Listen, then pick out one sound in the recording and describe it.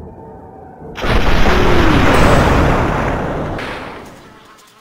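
Several gunshots ring out in quick succession and echo away.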